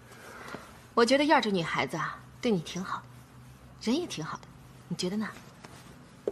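A young woman speaks gently and warmly up close.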